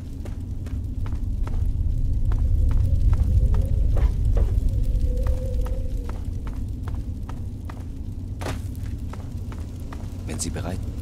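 Footsteps walk steadily through an echoing tunnel.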